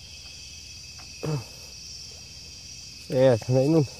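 A small object plops into still water.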